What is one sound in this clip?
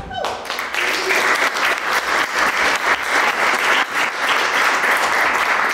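An ensemble of accordions plays a lively tune in an echoing hall.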